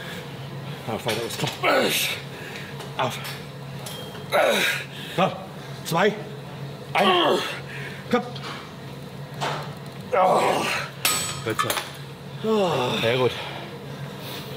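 A man coaches loudly and with animation close by.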